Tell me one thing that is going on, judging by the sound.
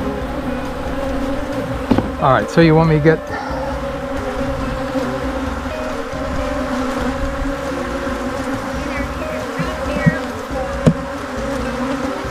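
Bees buzz in a steady, close hum.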